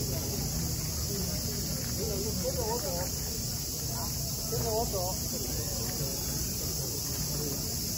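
A crowd of men and women talk and call out nearby outdoors.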